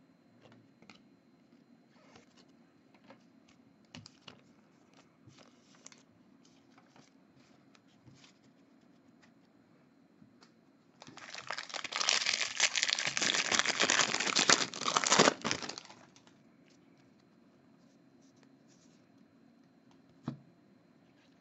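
Trading cards flick and rustle softly as they are shuffled by hand.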